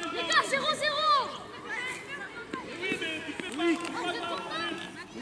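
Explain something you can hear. Young boys shout and cheer outdoors.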